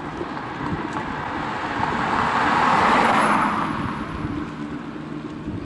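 A car approaches and passes close by, then fades.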